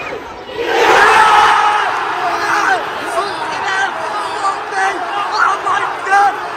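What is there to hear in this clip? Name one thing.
Nearby men shout with excitement.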